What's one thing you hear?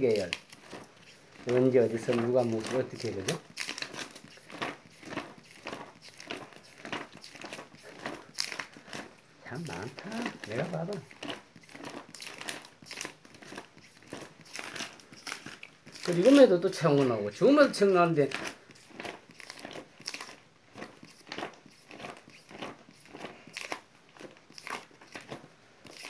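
Plastic sleeve pages rustle and flap as a hand turns them.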